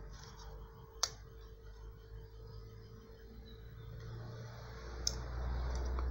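Small metal parts click together as something is fitted by hand.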